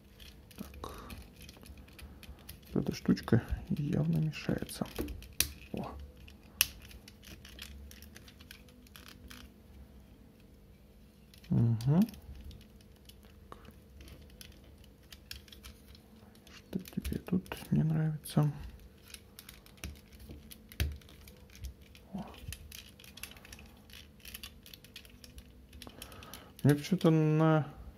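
Plastic parts of a toy click and snap as they are twisted into place.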